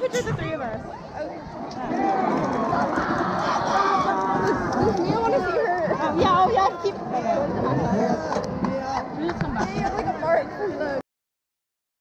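A crowd of young people shouts and chatters loudly close by.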